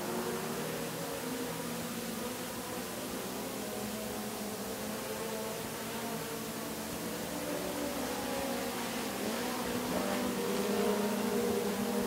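Race car engines roar loudly around a dirt track, rising and falling in pitch.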